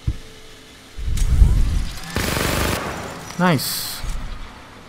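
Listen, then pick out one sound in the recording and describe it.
A heavy gun fires a loud burst.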